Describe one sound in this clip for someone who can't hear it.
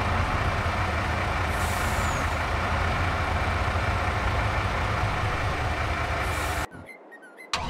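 A heavy diesel engine idles with a low rumble.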